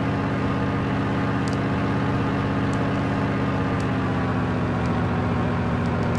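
A propeller engine drones steadily and loudly.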